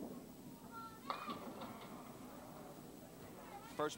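Bowling pins crash and clatter as a ball strikes them.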